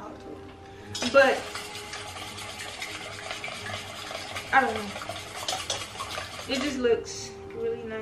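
A mixer whirs steadily in a bowl.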